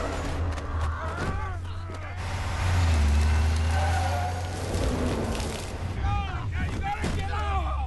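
A truck engine rumbles loudly.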